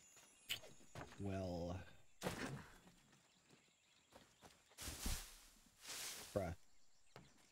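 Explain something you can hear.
A man speaks through a headset microphone, close and casually.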